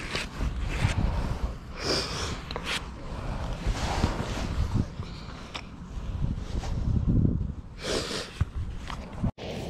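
A hoof pick scrapes mud from a horse's hoof.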